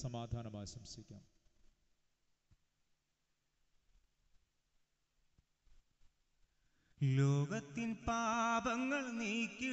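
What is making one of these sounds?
A middle-aged man chants through a microphone, pausing in between.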